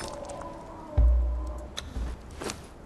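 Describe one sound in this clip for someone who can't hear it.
A boulder crumbles with a low rumble.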